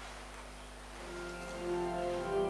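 A man begins to sing a slow chant in a large echoing hall.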